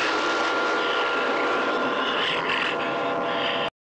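A beast snarls with bared teeth.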